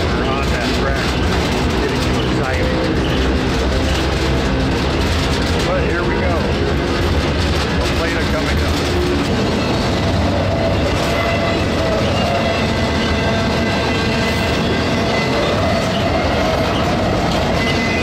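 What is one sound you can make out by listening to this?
A freight train rumbles and rattles steadily along the tracks.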